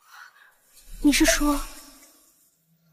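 A young woman speaks hesitantly.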